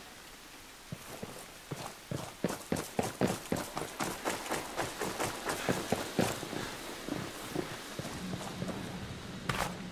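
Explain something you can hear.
Footsteps crunch quickly over gravel and grass.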